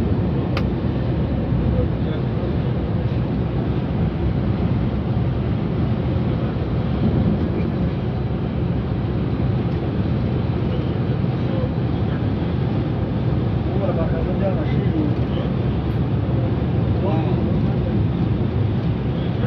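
A vehicle's engine drones steadily as it drives along a road.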